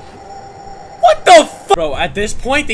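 A young man shouts loudly into a close microphone.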